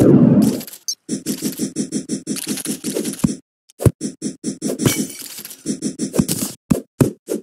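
A pickaxe chips at rock in quick, repeated strikes.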